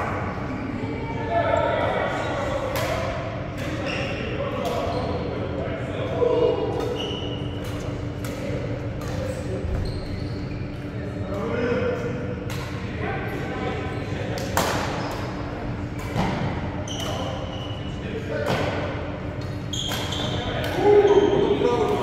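Rackets hit a shuttlecock with sharp smacks in a large echoing hall.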